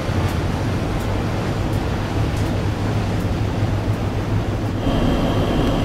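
A motorboat engine roars as the boat speeds across the water.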